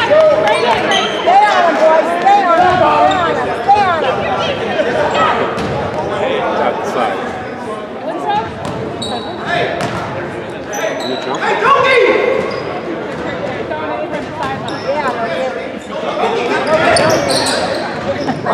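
Adults and children talk and shout nearby, echoing in a large gym.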